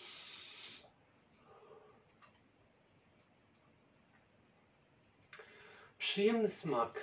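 A man exhales sharply with a breathy hiss.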